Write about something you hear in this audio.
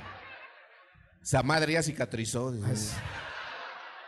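Young women laugh.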